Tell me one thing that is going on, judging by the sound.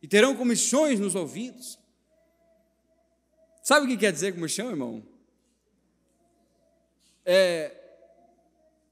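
A man speaks with animation into a microphone, in short bursts with pauses.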